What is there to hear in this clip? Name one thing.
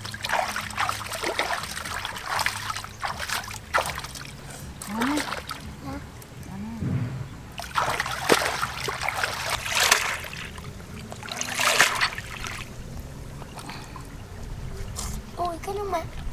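Water splashes and trickles close by.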